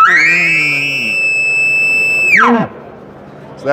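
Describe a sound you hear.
A game call blows a long, high, steady whistle that drops at the end.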